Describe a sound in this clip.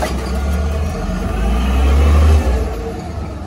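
A garbage truck's engine revs louder as the truck pulls away.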